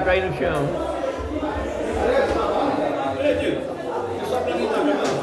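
Several men talk loudly nearby.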